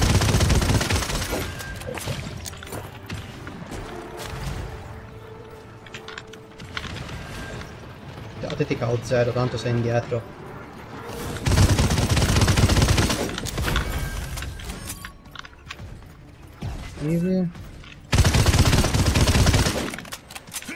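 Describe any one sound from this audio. Rapid gunfire bursts loudly in short volleys.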